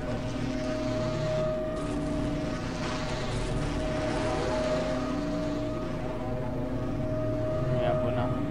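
A large machine hums steadily.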